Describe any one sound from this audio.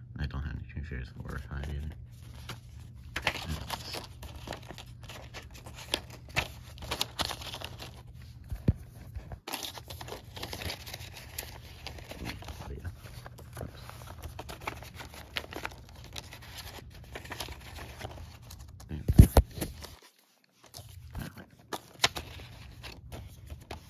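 A paper insert rustles as it is handled.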